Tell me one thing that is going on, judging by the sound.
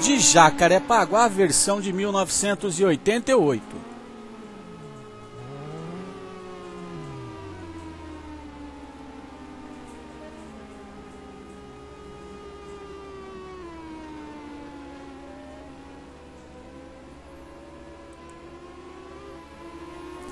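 Racing car engines rev loudly, then drone on with slowly shifting pitch.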